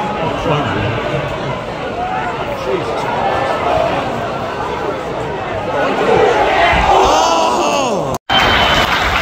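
A large crowd sings and chants loudly in an open stadium.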